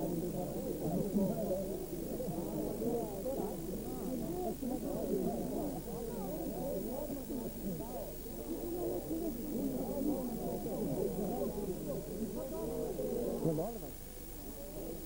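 A crowd of young men and women chatter and call out close by, outdoors.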